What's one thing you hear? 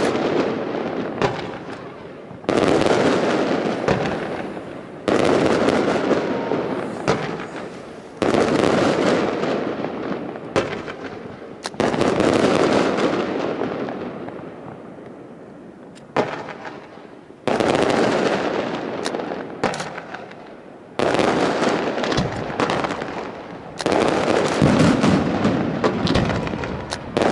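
Fireworks crackle and pop sharply.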